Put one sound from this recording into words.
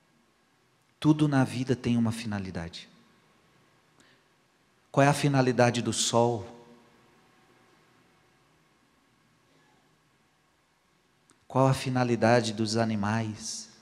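A man speaks calmly through a microphone, in bursts with pauses, in a reverberant hall.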